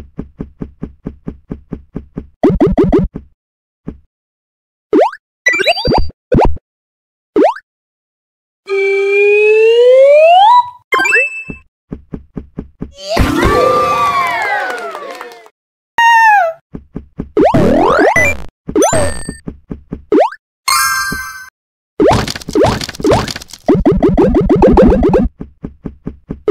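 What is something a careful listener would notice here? Quick electronic blips and beeps sound in rapid bursts.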